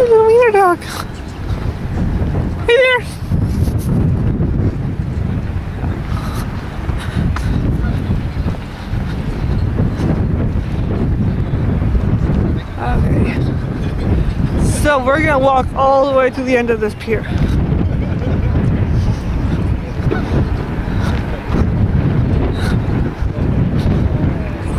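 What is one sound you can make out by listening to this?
Wind gusts and rumbles steadily outdoors.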